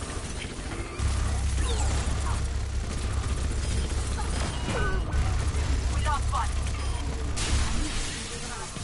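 A heavy gun fires in rapid bursts with low booming blasts.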